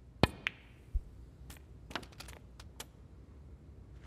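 Snooker balls knock together with sharp clicks.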